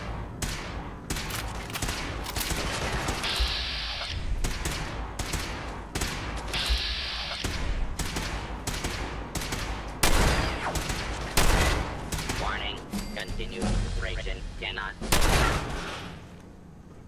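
A submachine gun fires rapid bursts of gunshots.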